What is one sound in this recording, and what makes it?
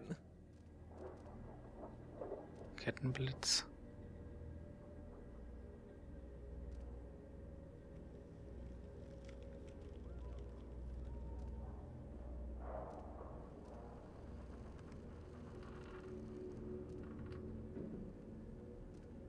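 Short game menu clicks sound as selections change.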